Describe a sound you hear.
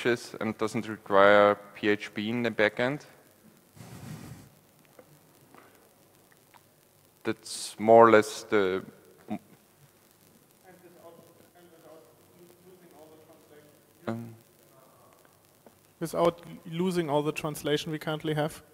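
A man speaks calmly into a microphone in a large echoing hall, pausing often.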